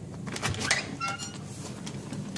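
An electronic door lock beeps briefly.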